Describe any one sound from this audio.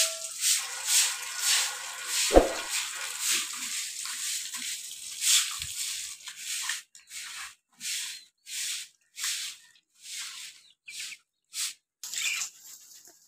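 A broom sweeps with brisk scratching strokes.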